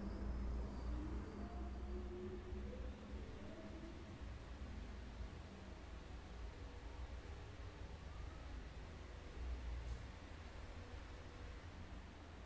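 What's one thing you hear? A man chants slowly into a microphone.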